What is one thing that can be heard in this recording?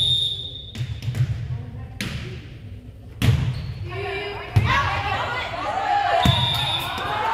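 A volleyball is struck with sharp slaps in an echoing gym.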